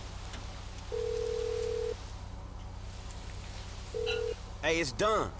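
A phone rings out with short beeping tones.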